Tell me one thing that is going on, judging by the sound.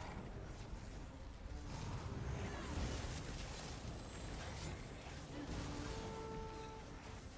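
Swords clash and spells burst in a fight.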